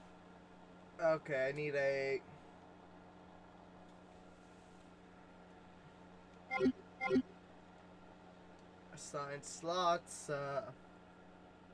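Short electronic chimes sound as a menu choice is confirmed.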